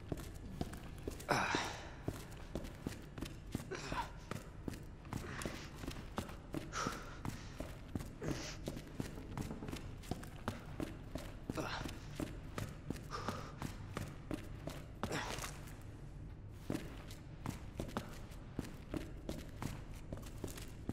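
Footsteps thud quickly on hard stairs and floors.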